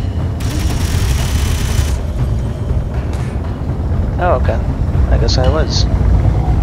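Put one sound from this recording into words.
A spaceship's engines rumble deeply and steadily.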